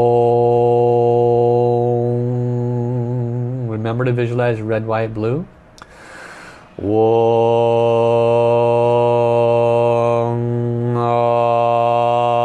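A middle-aged man chants a long, steady low tone close to a microphone.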